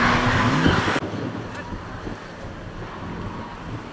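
A car engine drones faintly in the distance.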